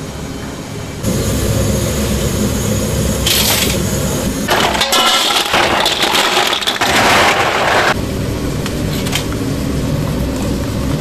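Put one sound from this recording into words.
Water boils and bubbles in a large pot.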